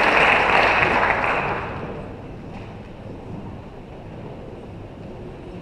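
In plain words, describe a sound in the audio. A crowd murmurs quietly in a large, echoing hall.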